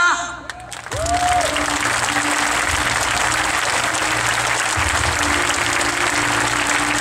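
A large crowd cheers and applauds loudly outdoors.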